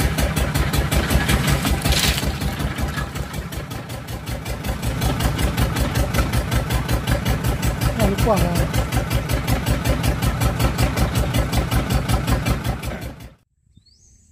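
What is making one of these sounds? A small boat engine chugs with a fast, steady throb, then stops.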